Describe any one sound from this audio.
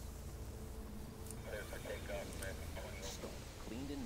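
Short electronic clicks sound.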